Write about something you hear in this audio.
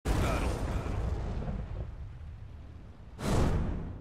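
A fiery roar rumbles loudly and slowly fades.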